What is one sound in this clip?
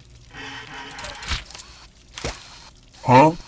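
A zapping beam fires with a sharp whoosh.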